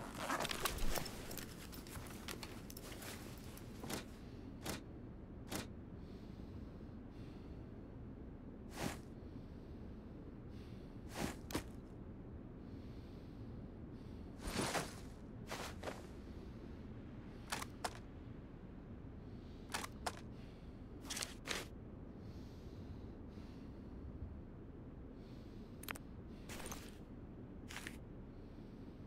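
Short game menu clicks and swishes sound as items are picked and moved.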